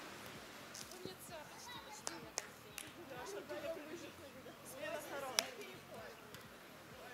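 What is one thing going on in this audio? Young people call out to each other outdoors at a distance.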